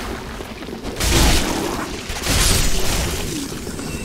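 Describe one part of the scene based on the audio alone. A sword swings and clashes with a shield.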